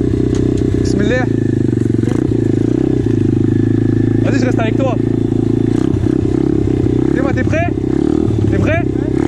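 A dirt bike engine idles and revs with a steady buzzing drone.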